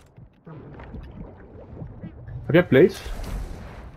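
Water bubbles and swirls underwater.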